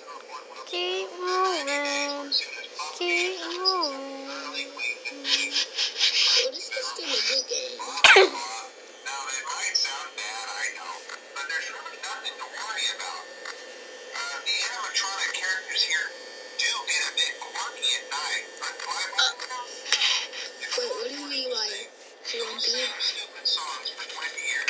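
A video game's sound effects chirp and clatter from a phone speaker.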